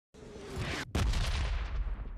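A nearby explosion booms and rumbles.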